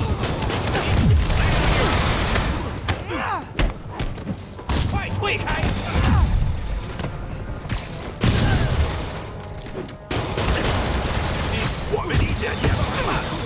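Punches and kicks land with heavy, quick thuds.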